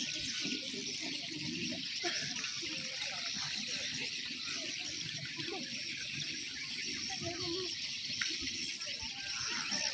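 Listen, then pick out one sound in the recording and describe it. Several people march in step on grass outdoors.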